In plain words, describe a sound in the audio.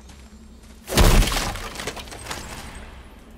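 A wooden chest bursts open with a loud crash.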